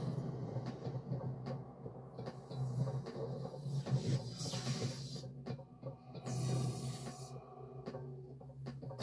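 A low hum from a video game drones steadily through a television speaker.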